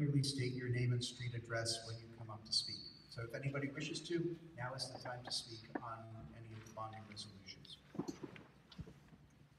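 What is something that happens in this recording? A man speaks calmly over a loudspeaker in a large echoing hall.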